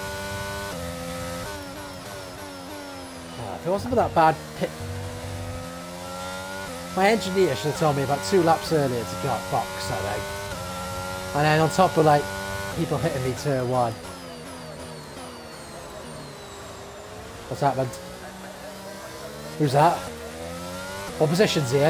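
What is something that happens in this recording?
An engine roars and rises and falls in pitch as it speeds up and slows down.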